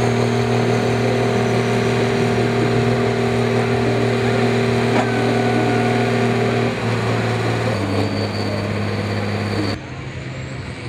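A tractor engine roars loudly at full power.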